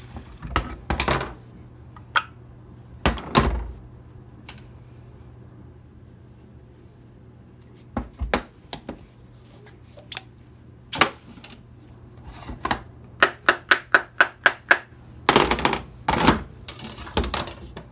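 Hard plastic and metal parts knock and clack together on a metal table.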